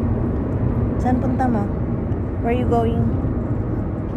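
A young girl speaks briefly, close by.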